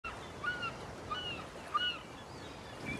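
A seagull cries several times overhead.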